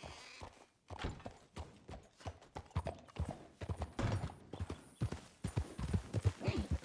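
Horse hooves clop steadily.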